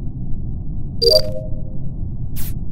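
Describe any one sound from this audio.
A cheerful electronic chime sounds as a card is accepted.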